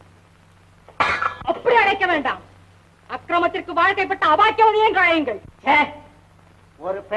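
A woman speaks dramatically, close by.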